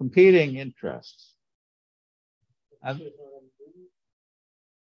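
A man lectures calmly into a microphone, heard through an online call.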